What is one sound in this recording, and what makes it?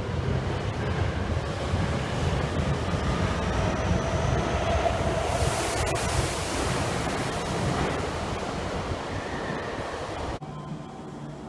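A subway train rushes past loudly in an echoing underground station.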